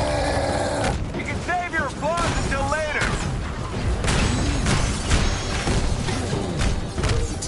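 Heavy punches thud and crash against metal.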